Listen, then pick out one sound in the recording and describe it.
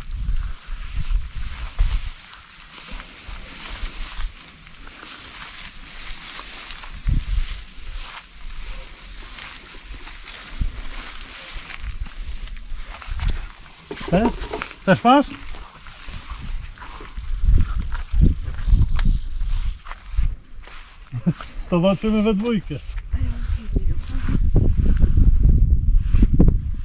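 Wind rumbles against the microphone outdoors.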